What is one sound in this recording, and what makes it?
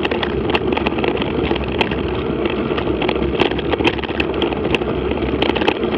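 Tyres crunch and rattle over a rough dirt track.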